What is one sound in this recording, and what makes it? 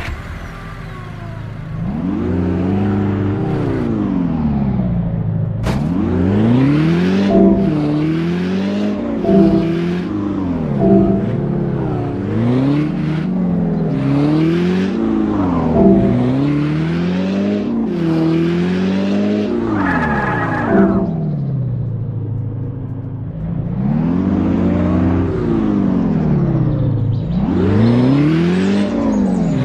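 A sports car engine revs up and drops again and again as it shifts gears.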